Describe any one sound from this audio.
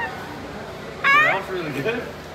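A parrot squawks loudly nearby.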